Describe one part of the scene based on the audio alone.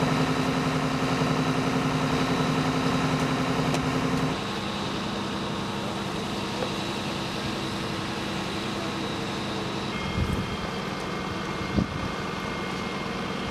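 A burning car roars and crackles.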